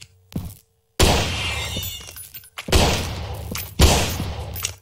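A pistol fires loud shots that echo.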